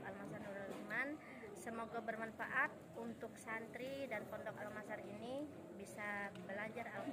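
A middle-aged woman speaks calmly and steadily, close to a microphone.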